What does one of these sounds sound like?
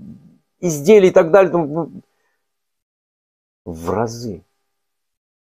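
An elderly man speaks calmly and closely into a microphone, in short phrases with pauses.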